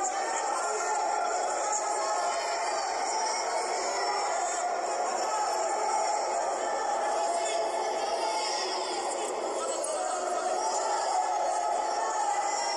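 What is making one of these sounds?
A large crowd murmurs steadily in a big echoing hall.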